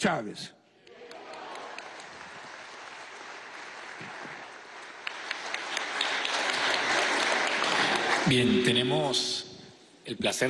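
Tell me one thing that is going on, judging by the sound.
A large crowd applauds loudly, the clapping swelling and then stopping.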